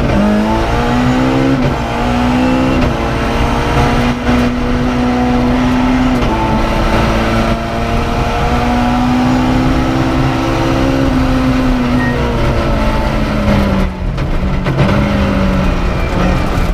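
A rally car engine roars loudly, revving up and down through gear changes.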